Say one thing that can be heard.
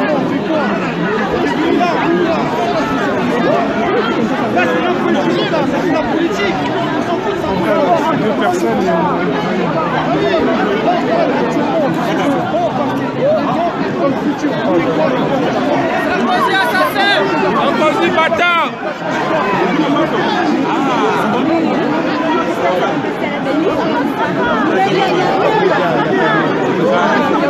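A large crowd of men and women shouts and chatters loudly, close by, outdoors.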